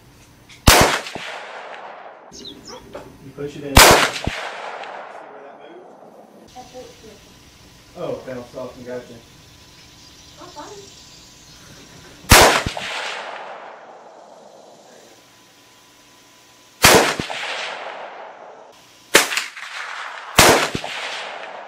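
A rifle fires loud sharp shots, each one echoing away outdoors.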